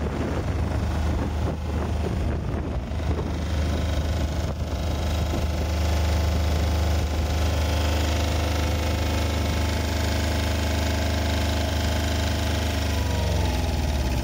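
A diesel generator engine runs with a steady, loud hum.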